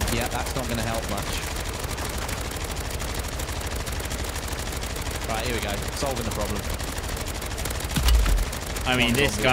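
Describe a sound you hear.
Automatic gunfire rattles rapidly.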